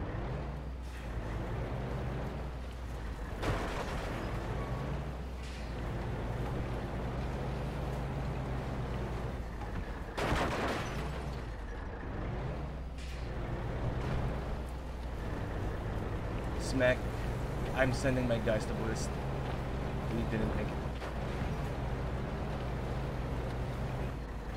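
A truck engine rumbles steadily while driving over rough ground.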